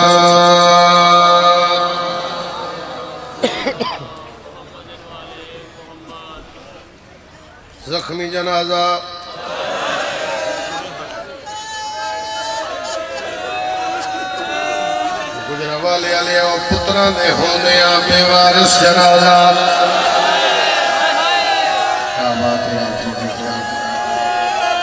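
A man chants loudly and passionately into a microphone, echoing through loudspeakers.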